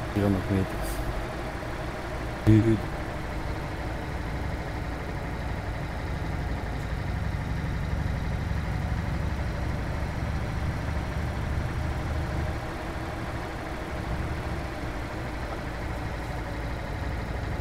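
Tyres roll on an asphalt road.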